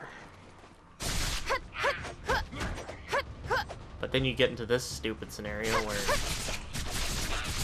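Blades swing and strike in a fight.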